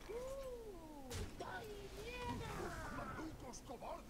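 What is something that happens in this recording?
A magical spell bursts with a shimmering whoosh.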